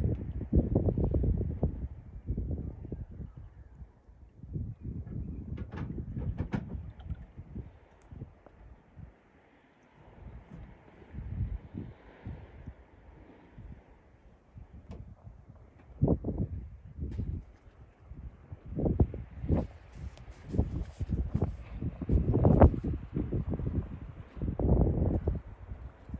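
Wind gusts outdoors over open water, rumbling in bursts.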